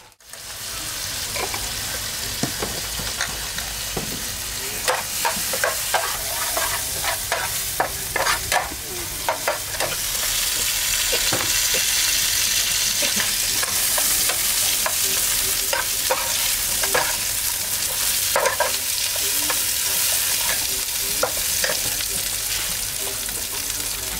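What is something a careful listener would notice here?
Oil sizzles and crackles in a hot pan.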